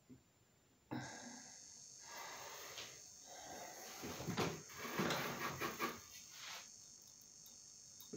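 Clothing rustles close by as a man moves about.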